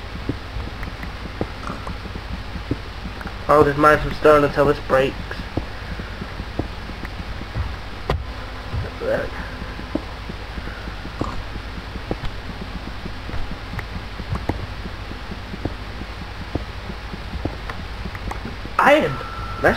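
A pickaxe taps and chips at stone.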